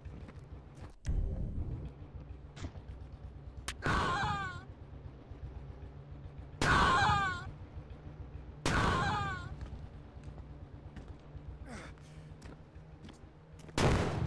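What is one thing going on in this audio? A rocket launcher fires, and loud explosions boom.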